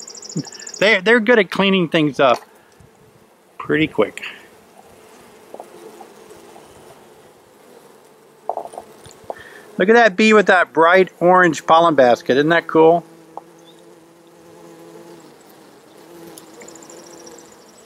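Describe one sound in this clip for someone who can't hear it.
Honeybees buzz in a low, steady hum close by.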